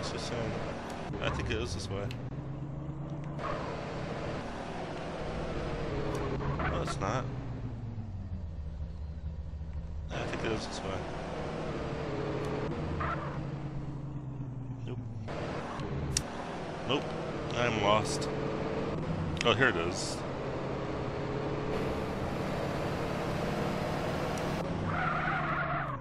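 Car tyres screech while skidding around corners.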